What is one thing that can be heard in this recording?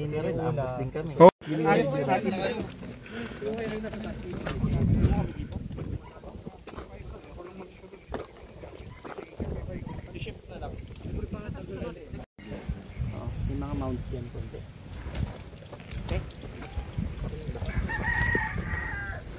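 Men talk in low voices nearby.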